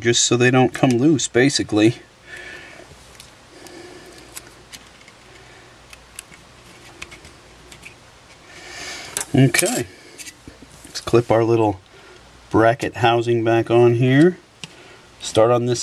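Small metal parts click softly as tweezers pry at them.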